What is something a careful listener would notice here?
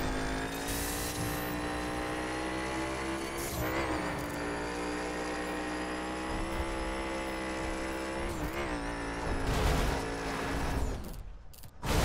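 A race car engine roars at high revs, shifting gears as it speeds along.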